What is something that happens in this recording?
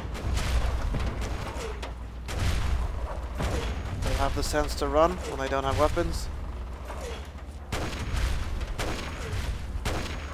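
Heavy footsteps crunch on loose gravel.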